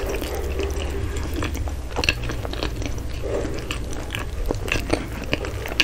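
Flaky pastry crackles and crumbles as fingers tear it.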